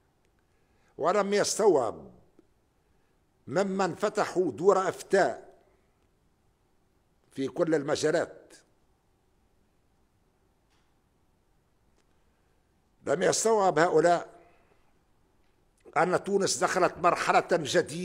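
An elderly man speaks slowly and formally into a microphone, pausing between phrases.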